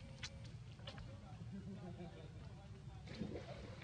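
Water splashes softly as monkeys swim nearby.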